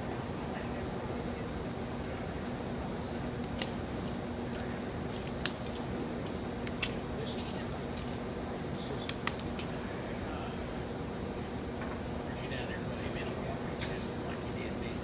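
Horse hooves thud softly on dirt in a large echoing hall.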